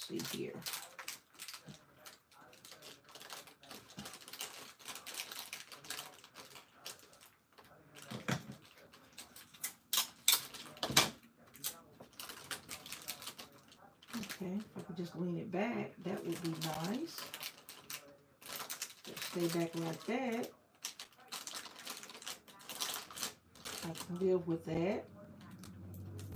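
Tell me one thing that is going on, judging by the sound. Plastic candy wrappers crinkle as hands pack them into a basket.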